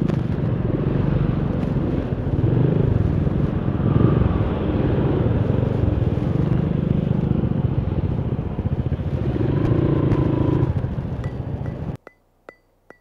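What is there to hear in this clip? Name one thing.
Wind roars loudly past the rider.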